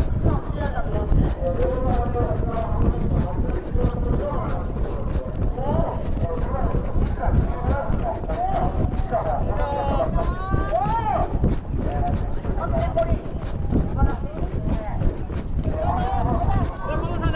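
Running footsteps pound steadily on a track.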